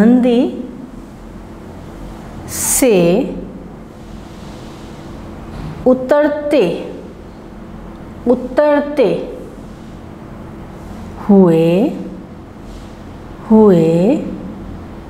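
A woman speaks slowly and clearly into a close microphone, in short phrases with pauses.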